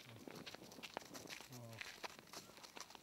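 A sheep bleats.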